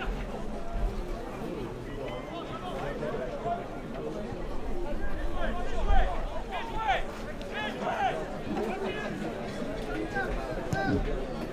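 A crowd of spectators shouts and cheers outdoors.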